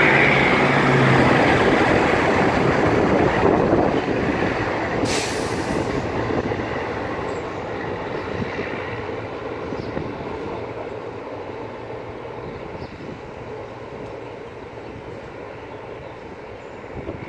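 A train rumbles past close by and slowly fades into the distance.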